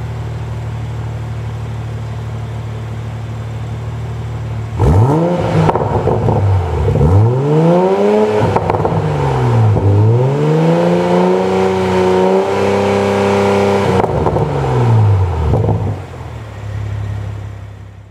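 A car engine idles with a deep, steady rumble through its exhaust.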